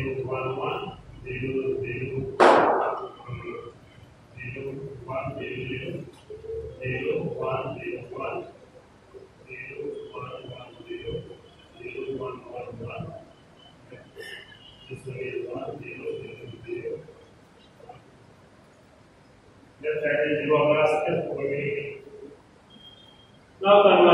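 A man speaks calmly and explains nearby.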